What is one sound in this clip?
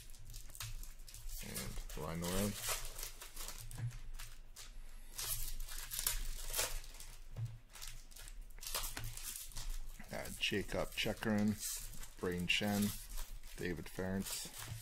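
Trading cards rustle and slide against each other as they are flipped.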